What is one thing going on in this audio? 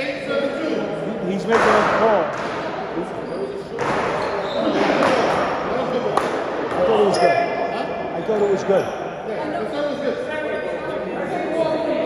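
A paddle smacks a ball sharply.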